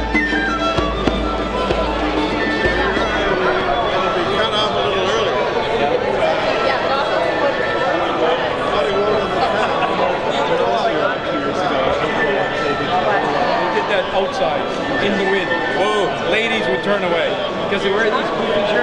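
A crowd of men and women chatter all around.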